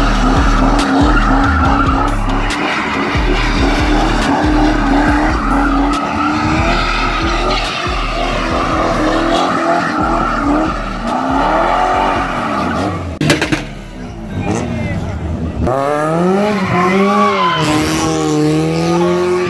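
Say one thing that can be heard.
A car engine roars and revs hard close by.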